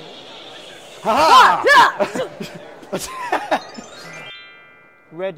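A group of people laugh and cheer.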